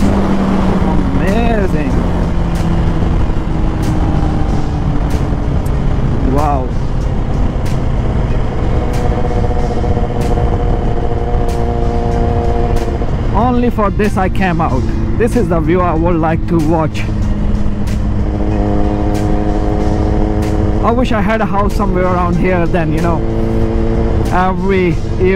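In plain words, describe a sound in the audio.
A motorcycle engine hums steadily close by, its pitch rising and falling as it changes speed.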